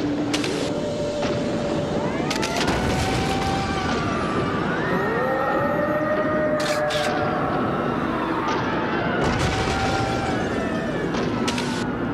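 Heavy crashes and booms ring out as buildings are smashed.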